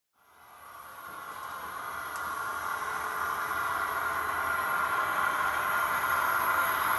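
A model train whirs and rattles along its track, growing steadily louder as it approaches.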